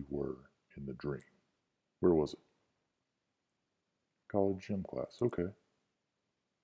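A young man speaks softly and closely into a microphone, in short phrases with pauses.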